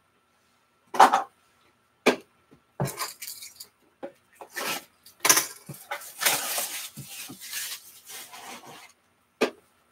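Cardboard boxes knock and scrape as they are picked up and handled.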